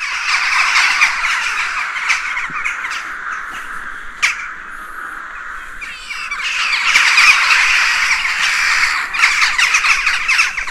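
A large flock of birds chatters and calls noisily overhead outdoors.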